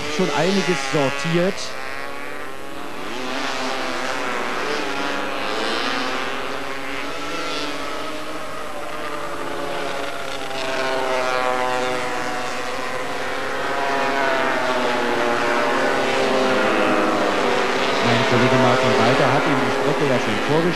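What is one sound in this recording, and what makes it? Racing motorcycle engines roar and whine as they rev past through a bend.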